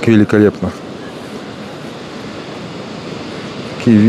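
Waves wash softly onto a shore below.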